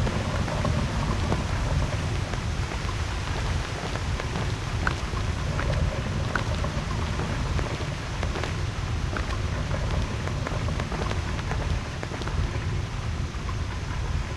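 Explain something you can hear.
Soft scrapes and taps sound as a figure climbs and grabs stone ledges.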